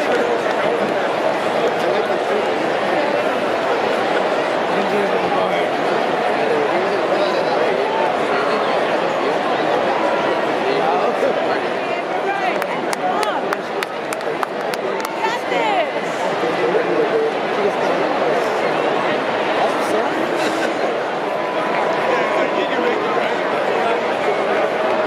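A large stadium crowd chatters and cheers in a steady roar.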